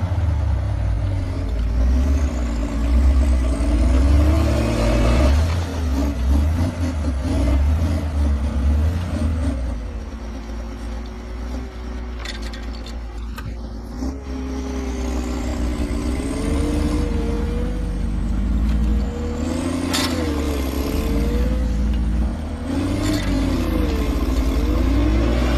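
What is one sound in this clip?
A heavy diesel engine roars and revs loudly nearby.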